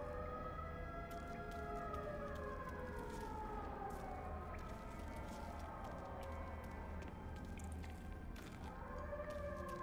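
Footsteps tread softly on a hard, gritty floor.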